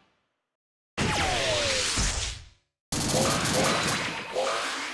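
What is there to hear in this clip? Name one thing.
Bright game attack effects burst and sparkle.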